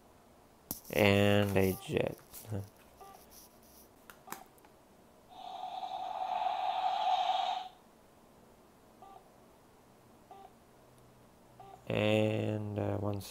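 A toy electronic unit plays a short chirping jingle.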